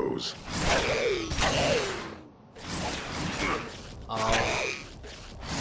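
Weapons clash and thud in a close fight.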